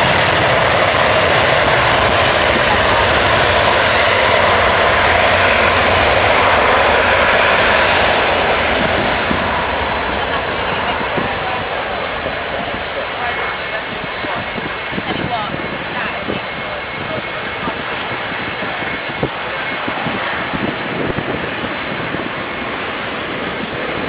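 Jet engines roar loudly as an airliner speeds down a runway and climbs away.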